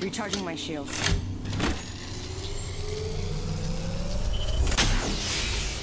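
A shield battery charges with a rising electronic hum.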